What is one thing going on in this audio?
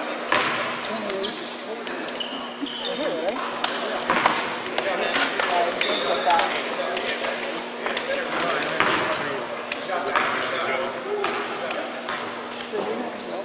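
Young men chatter and call out in a large echoing gym.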